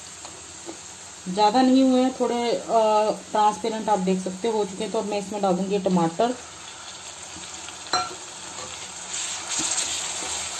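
Onions sizzle gently in hot oil.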